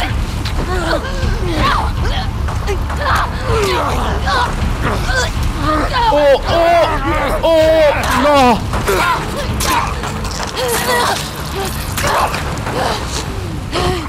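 A man groans and snarls close by.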